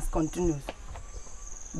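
A man speaks in a deep voice nearby.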